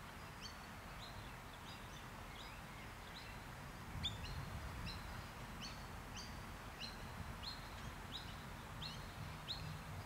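A light wind blows outdoors.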